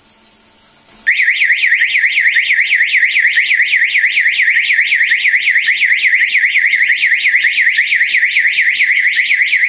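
An electronic alarm siren wails loudly with a fast warbling tone.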